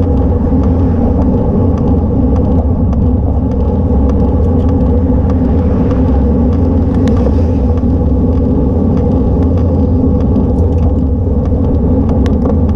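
Bicycle tyres hum on a paved road.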